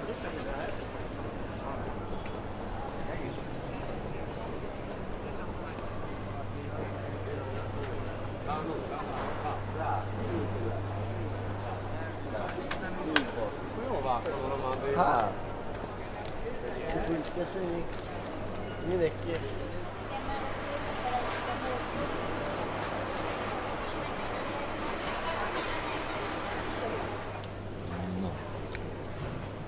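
A crowd murmurs and chatters in a busy indoor hall.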